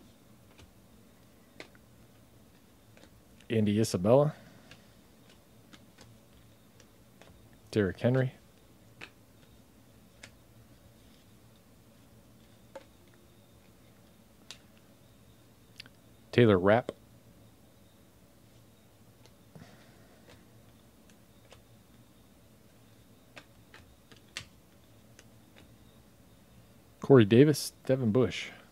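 Trading cards flick and click softly as they are sorted by hand.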